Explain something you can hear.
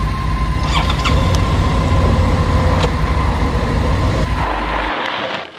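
Traffic passes on a road.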